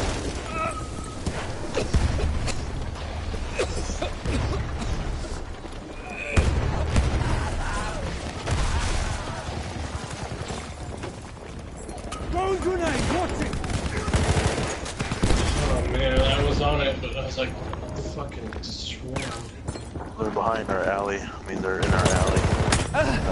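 Automatic gunfire rattles in loud bursts.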